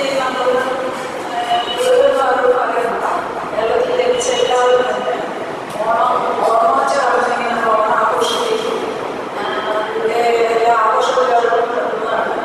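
Another middle-aged woman speaks with animation into a microphone, heard through a loudspeaker.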